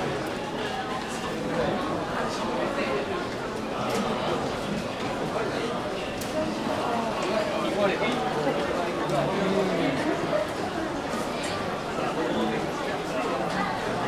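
Many people talk at once in a steady murmur of voices.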